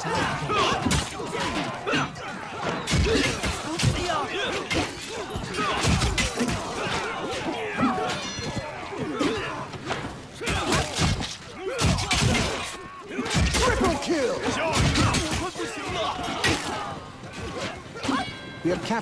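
Swords clash and strike repeatedly in a loud battle.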